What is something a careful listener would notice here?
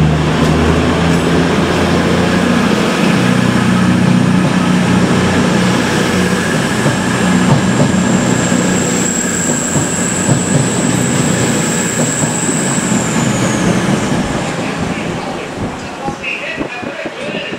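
Train wheels clatter and hiss on the rails, fading as the train leaves.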